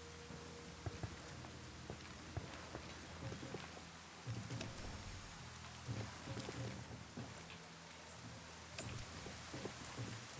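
Boots clang on metal stairs.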